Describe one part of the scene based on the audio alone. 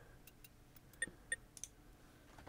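Short soft interface clicks sound as menu items are selected.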